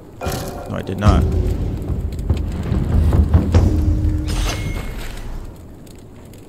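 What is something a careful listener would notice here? Fire roars with a deep rumble, then fades.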